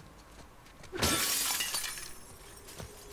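Glass shatters loudly as a window is smashed.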